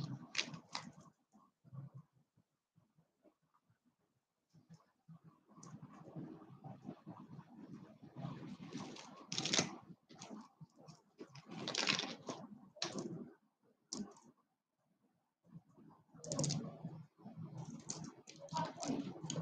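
Beaded necklaces clink and rattle as they are handled.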